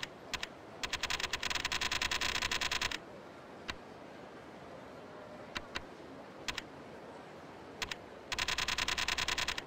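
Quick electronic menu ticks click in rapid runs as a list scrolls.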